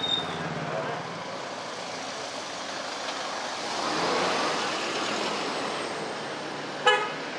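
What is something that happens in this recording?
An ambulance engine rumbles as it drives past close by.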